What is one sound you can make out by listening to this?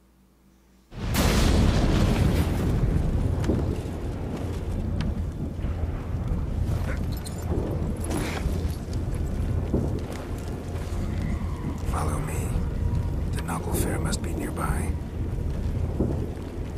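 A strong wind howls outdoors.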